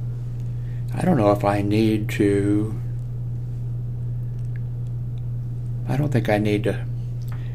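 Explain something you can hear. An elderly man speaks calmly into a nearby microphone.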